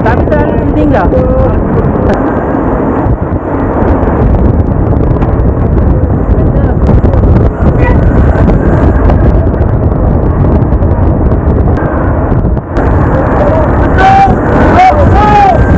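Strong wind rushes loudly past the microphone.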